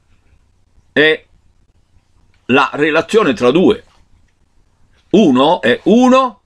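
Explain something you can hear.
An elderly man talks with animation close to a microphone.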